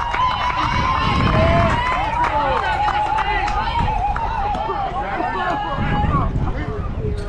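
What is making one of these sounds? Young girls chant and cheer loudly outdoors.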